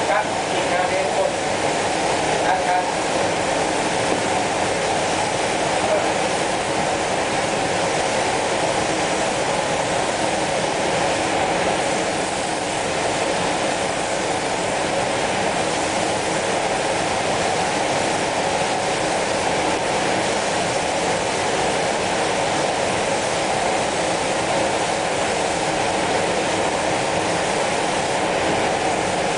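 A spray gun hisses steadily as paint is sprayed.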